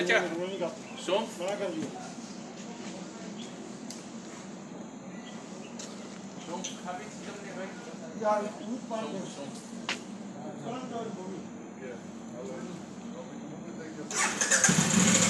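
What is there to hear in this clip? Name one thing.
Men talk nearby in casual voices.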